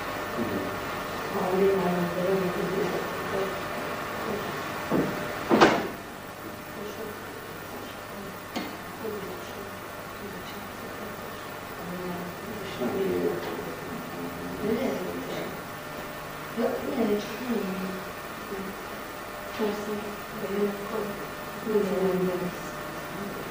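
A young woman talks calmly at some distance.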